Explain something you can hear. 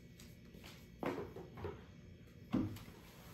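A plastic dustpan knocks against the floor.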